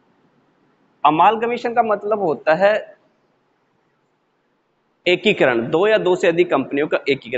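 A young man speaks clearly into a close microphone, explaining with animation.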